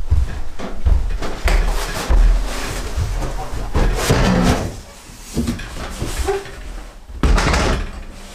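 A cardboard box scrapes and rustles.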